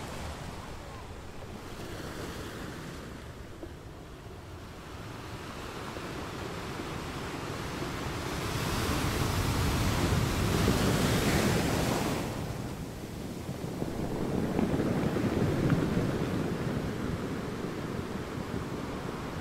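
Ocean waves crash and roar in surges against rocks.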